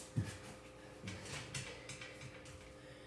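A child rustles and shifts across a leather sofa.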